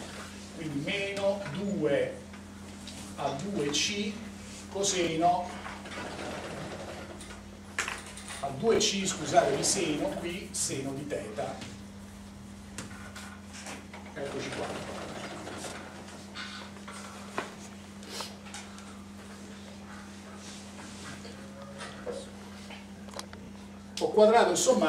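A middle-aged man lectures aloud in a room with some echo.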